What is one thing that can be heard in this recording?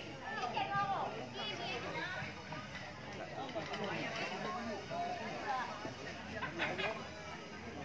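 A crowd of people chatter and call out nearby outdoors.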